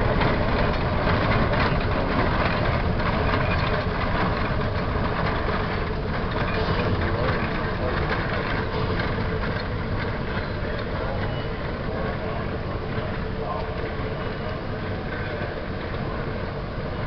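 Train wheels clatter and rumble on the rails.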